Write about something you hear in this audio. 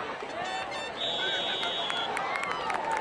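A referee's whistle blows a short shrill blast.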